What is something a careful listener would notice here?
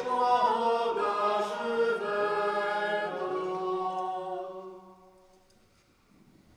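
A man sings a slow chant in a large echoing hall, the sound ringing on as it fades.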